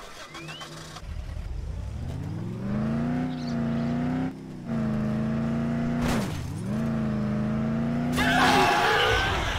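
A car engine revs and drones steadily, rising and dipping in pitch as gears change.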